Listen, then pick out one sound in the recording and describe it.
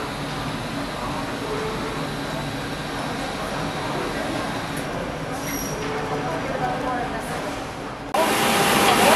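Men and women murmur and chat quietly.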